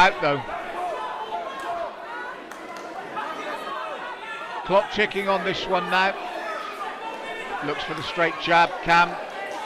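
A crowd shouts and cheers.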